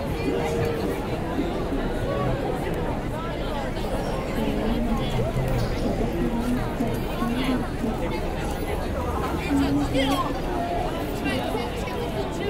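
A busy crowd of men and women chatters all around outdoors.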